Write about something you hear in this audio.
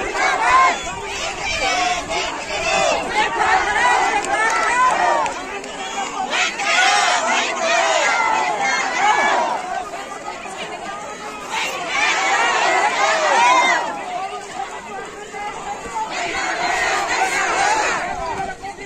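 A crowd of men and women chants and talks loudly outdoors.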